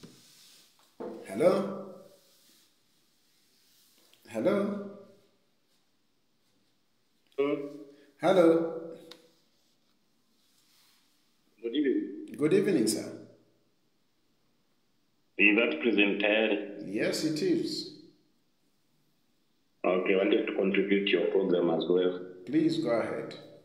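A man speaks close by in short, halting phrases with pauses.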